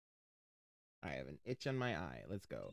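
A young man talks with animation, close to a microphone.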